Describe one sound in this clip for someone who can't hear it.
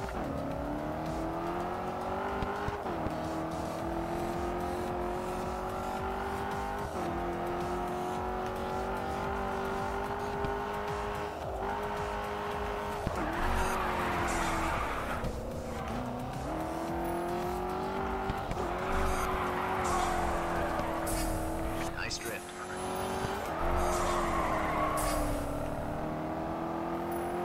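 A car engine roars steadily at high revs, dropping in pitch with each gear change.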